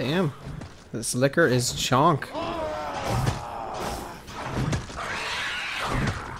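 A monster growls and snarls.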